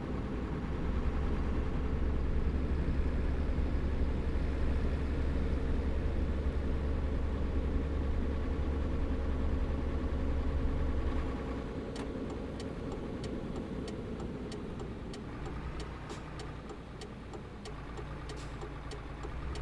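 A truck engine drones steadily, then eases off to a quieter hum.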